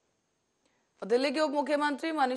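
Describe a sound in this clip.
A woman speaks clearly and steadily into a microphone, like a news presenter.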